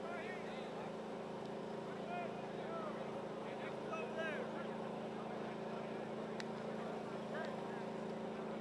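Young men shout and call out to each other in the distance, outdoors.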